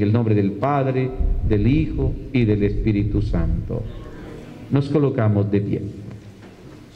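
A middle-aged man speaks through a microphone in a slow chanting voice.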